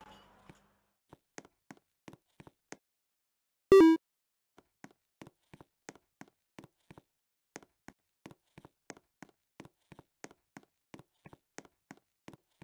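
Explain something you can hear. Footsteps tap at a steady pace on hard ground.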